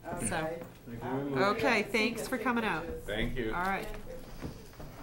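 An elderly woman talks with animation nearby.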